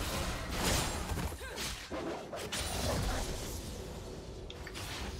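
Game spell effects whoosh and crackle in bursts during a fight.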